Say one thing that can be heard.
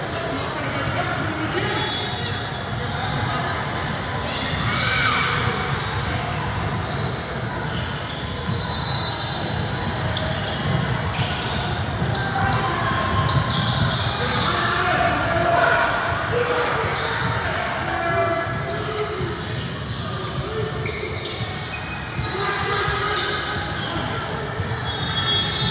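Spectators chatter and call out across the gym.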